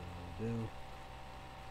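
A man speaks a brief word close by.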